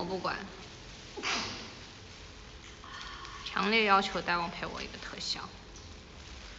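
A young woman speaks casually, close to the microphone.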